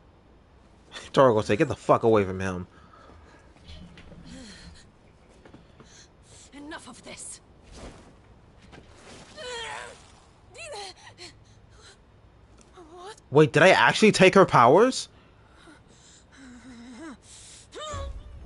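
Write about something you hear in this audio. A woman speaks tensely and angrily, close up.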